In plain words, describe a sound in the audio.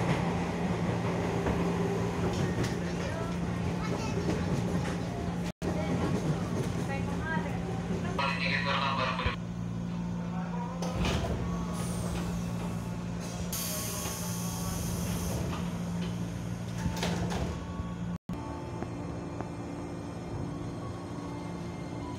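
A train car hums and rumbles steadily.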